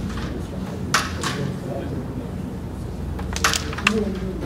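Carrom pieces click sharply as a striker is flicked across the board.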